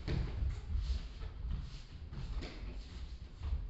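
Fists and kicks thud against a body.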